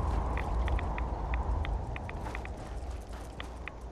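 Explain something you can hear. A jetpack roars with a low rumble.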